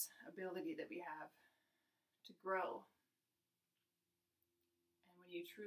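A young woman speaks calmly and softly close by, with pauses.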